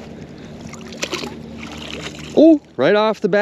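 Water splashes and drips as a magnet is pulled out of a river.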